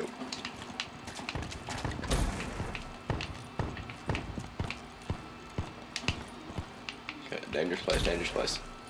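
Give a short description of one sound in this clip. Quick footsteps thud on a hard floor.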